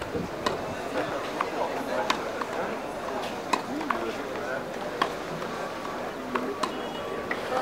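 Tennis balls are struck with sharp pops on an outdoor court.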